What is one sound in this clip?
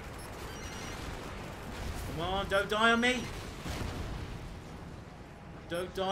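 Explosions boom and rumble in a game.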